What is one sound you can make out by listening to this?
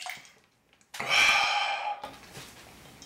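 A man lets out a loud, satisfied sigh after drinking.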